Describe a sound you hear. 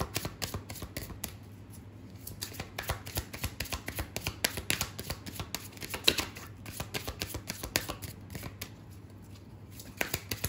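Cards shuffle with quick, soft slapping and riffling clicks.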